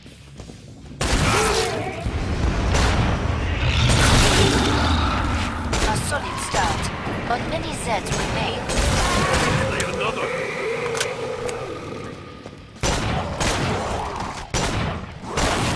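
Pistol shots bang in quick bursts.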